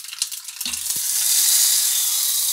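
Batter sizzles loudly in a hot pan.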